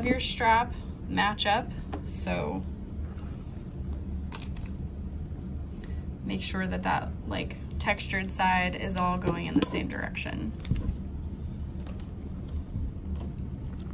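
Stiff plastic straps rustle and creak as hands handle them.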